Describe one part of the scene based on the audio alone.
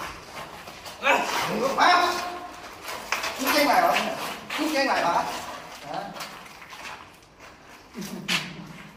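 A man cries out and groans nearby.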